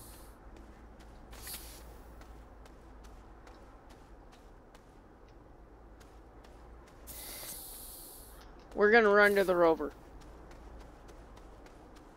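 Soft footsteps patter quickly on grass.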